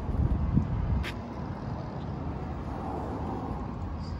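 A car's tailgate unlatches with a click and swings open.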